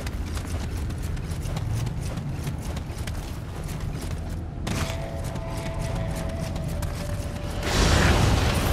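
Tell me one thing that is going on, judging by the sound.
Footsteps crunch over rough ground.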